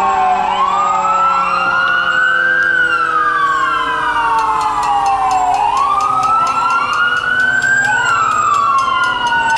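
A police siren wails loudly close by, rising and falling.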